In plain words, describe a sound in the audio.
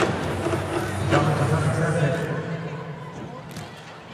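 A volleyball bounces on the court floor.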